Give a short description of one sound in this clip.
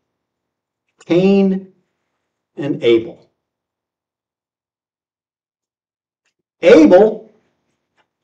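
An older man speaks forcefully through a microphone in short bursts with pauses.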